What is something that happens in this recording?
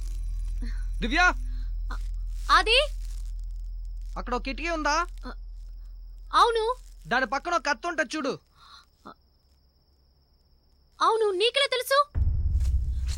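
A young woman calls out fearfully nearby.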